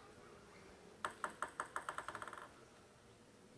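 A table tennis ball bounces on a hard surface in quick, quickening taps.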